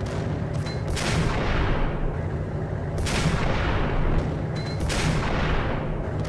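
A bullet whooshes through the air.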